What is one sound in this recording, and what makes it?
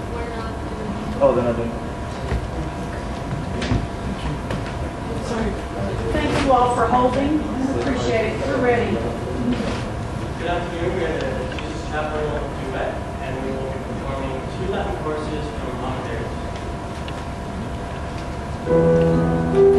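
A young man talks calmly in a large, echoing room.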